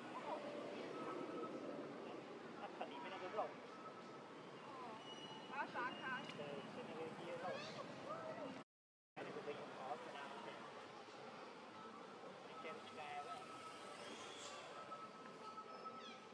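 A baby monkey squeaks and squeals nearby.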